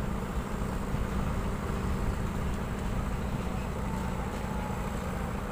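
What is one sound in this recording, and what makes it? A concrete mixer truck's engine rumbles steadily nearby.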